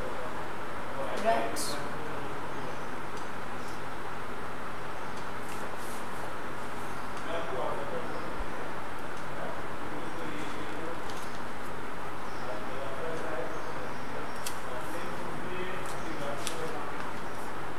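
A woman speaks calmly and slowly, as if teaching, close by.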